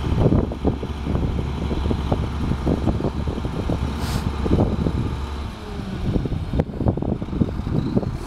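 A garbage truck's compactor whines and clanks.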